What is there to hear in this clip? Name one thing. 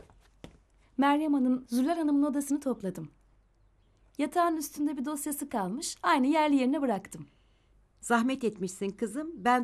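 A woman speaks close by, with feeling.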